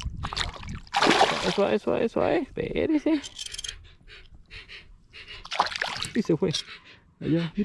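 A fish thrashes and splashes in the water close by.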